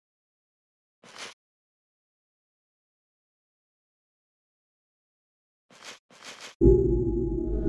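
Soft page-turning blips sound.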